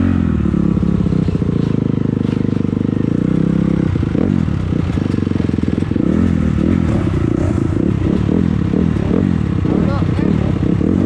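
A motorbike engine revs loudly, rising and falling in pitch.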